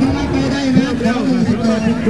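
A crowd of people chatter outdoors at a distance.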